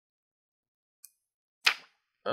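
A hard plastic case clicks as it is handled.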